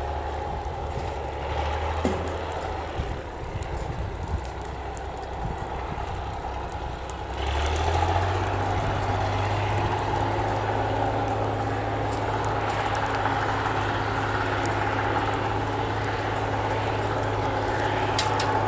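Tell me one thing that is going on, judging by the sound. A grass fire crackles and pops nearby.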